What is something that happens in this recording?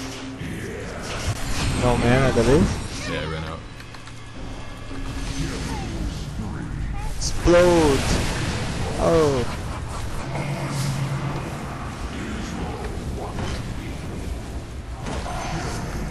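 Magic spells whoosh and crackle in a fast fantasy battle.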